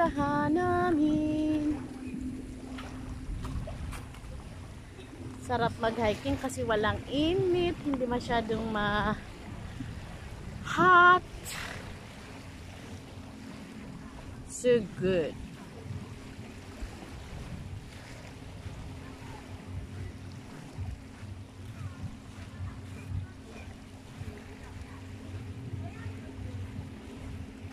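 Small waves lap gently against the shore.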